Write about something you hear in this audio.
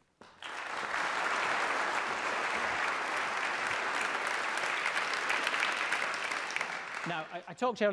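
A large audience applauds in an echoing hall.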